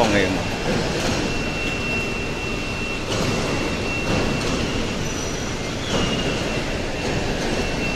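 A hoist motor whines steadily as it lifts a load.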